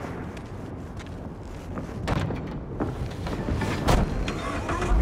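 A car door clunks open and slams shut.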